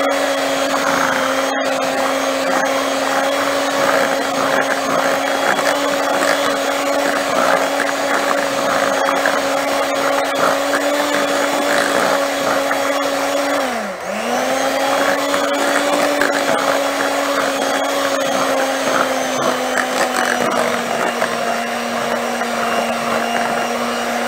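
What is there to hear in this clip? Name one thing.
An electric hand mixer whirs steadily, dipping briefly in speed before picking up again.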